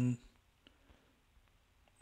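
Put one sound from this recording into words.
Footsteps fall softly on the ground.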